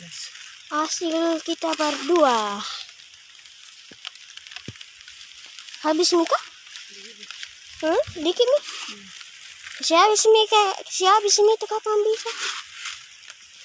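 A woman talks with animation close by, outdoors.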